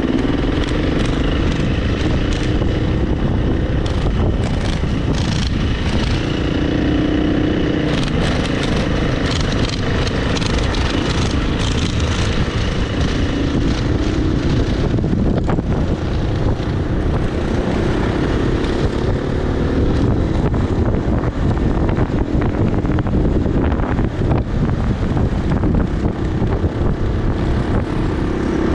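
A dirt bike engine roars up close, rising and falling as it revs.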